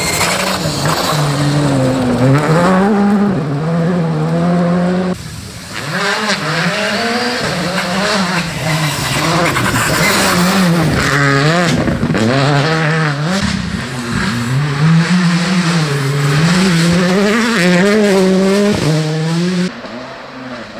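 Rally car engines roar and rev hard as cars speed past.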